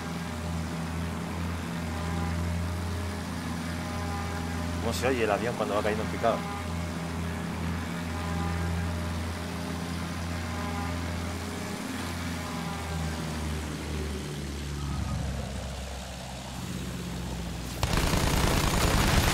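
A propeller plane engine drones steadily.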